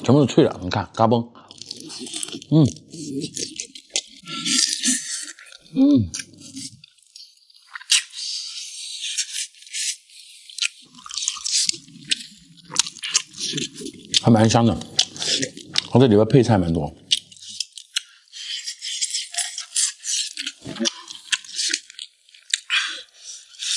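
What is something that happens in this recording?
A young man chews and slurps food noisily, close up.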